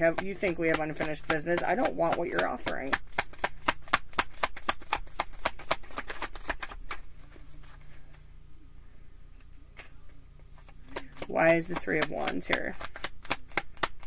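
Cards riffle and flap rapidly as a deck is shuffled.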